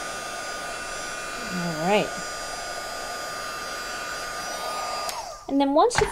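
A heat tool blows with a steady whirring hum.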